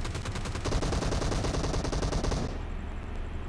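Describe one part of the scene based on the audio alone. Rapid gunshots fire in a quick burst.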